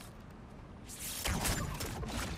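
A bow releases an arrow with a sharp whoosh.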